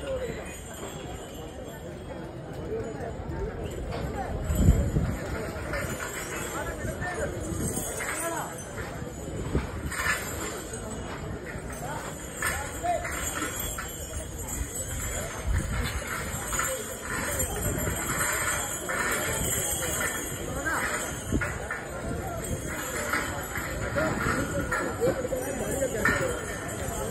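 Outdoors, a crowd of people chatters in the distance.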